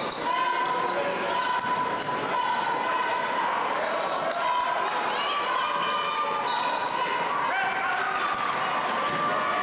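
A large crowd murmurs in a big echoing gym.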